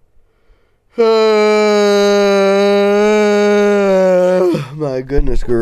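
A young man sings out a long, loud, steady note.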